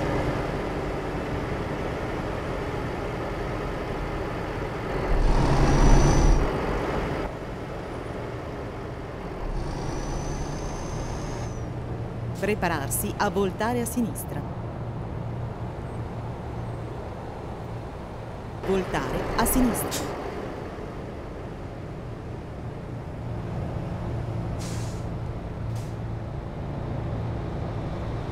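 A truck engine hums steadily as it drives along.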